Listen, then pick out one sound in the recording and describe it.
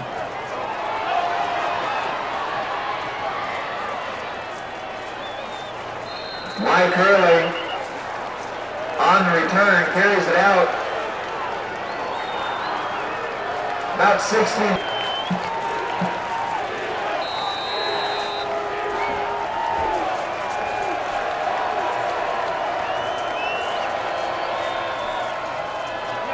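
A large crowd murmurs and cheers steadily outdoors.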